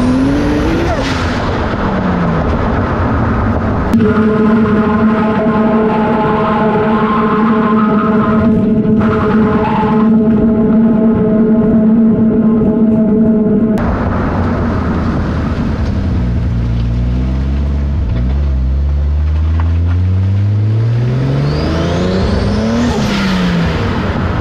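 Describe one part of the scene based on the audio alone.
A car engine roars, its pitch rising and falling.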